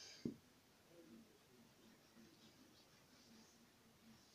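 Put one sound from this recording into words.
An eraser rubs across a whiteboard.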